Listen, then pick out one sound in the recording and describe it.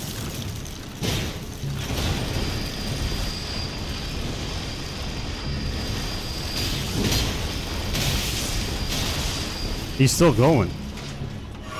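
Heavy blows land with loud crashing impacts.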